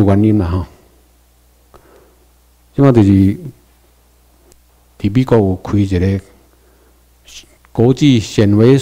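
A man speaks slowly into a microphone over loudspeakers, pausing between phrases.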